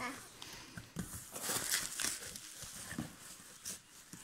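Bubble wrap crinkles and rustles.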